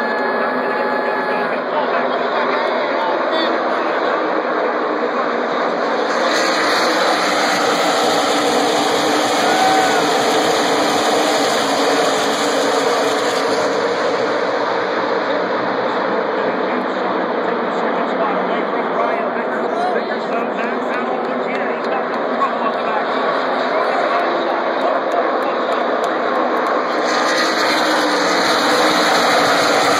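Race cars roar loudly around the track.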